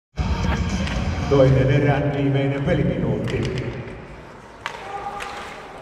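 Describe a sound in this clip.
Ice skates scrape and hiss on the ice.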